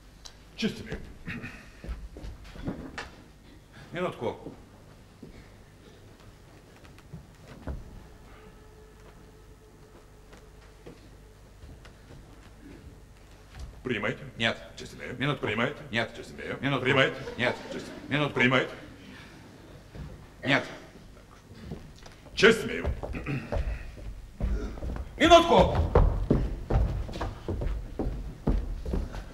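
A middle-aged man speaks with animation on a stage in a large hall.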